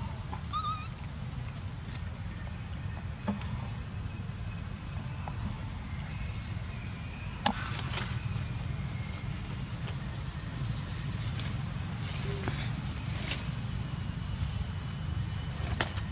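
Dry leaves rustle and crackle as a baby monkey scampers over the ground.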